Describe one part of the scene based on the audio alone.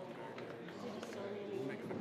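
Men talk with one another nearby.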